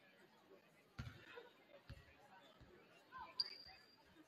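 A basketball bounces with hollow thuds on a wooden floor.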